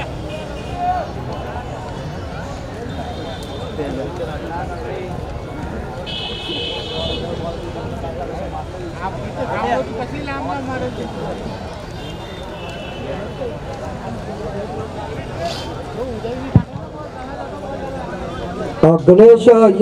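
Men talk quietly at a distance outdoors.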